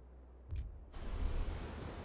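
Water splashes as a figure wades.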